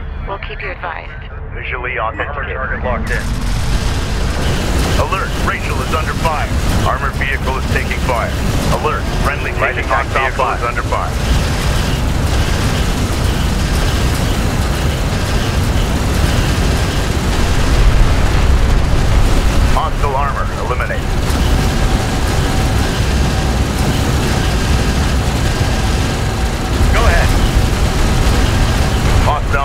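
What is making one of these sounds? Vehicle engines rumble low and steadily.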